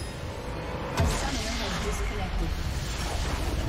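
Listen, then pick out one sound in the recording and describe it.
A loud game explosion booms.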